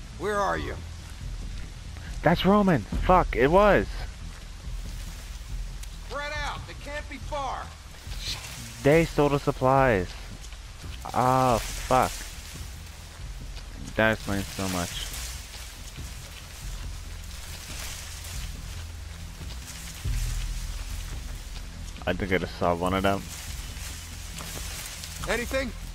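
Leaves rustle as a person walks through tall crops.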